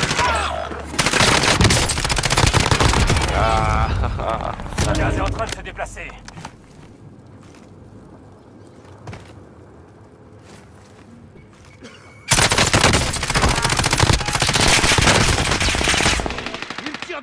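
Rapid bursts of automatic gunfire ring out.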